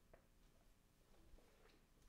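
A ukulele is plucked softly.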